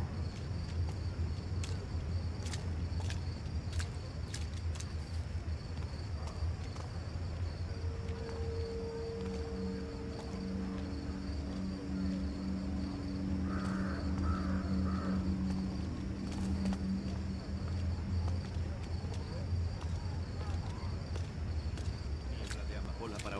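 Soft footsteps tap on cobblestones.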